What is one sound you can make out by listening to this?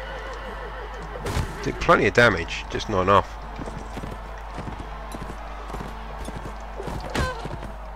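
Horse hooves thud steadily as a horse gallops over the ground.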